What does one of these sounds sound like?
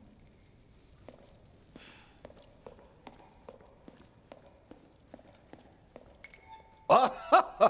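Footsteps tap steadily on a hard floor in a large echoing hall.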